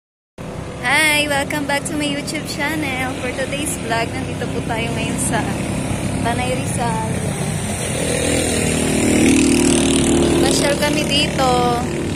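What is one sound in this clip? A young woman talks close by, calmly.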